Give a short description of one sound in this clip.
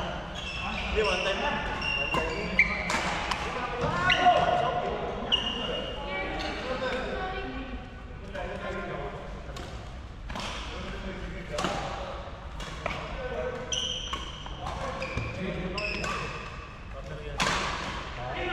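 Shoes squeak sharply on a wooden court.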